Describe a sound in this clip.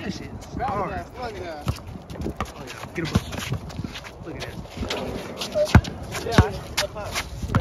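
Young men shout and call out nearby.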